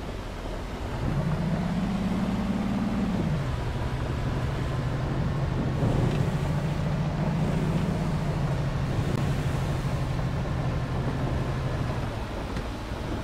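A bus engine hums low and steady, swelling louder as it speeds up.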